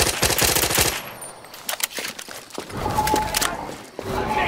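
A gun's metal parts click as it is handled.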